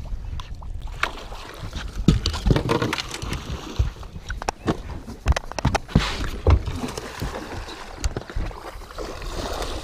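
A fish splashes and thrashes in the water close by.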